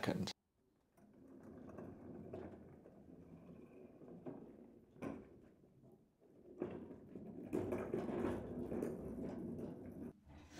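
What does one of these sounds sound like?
A wheeled machine rolls and rattles over rough ground.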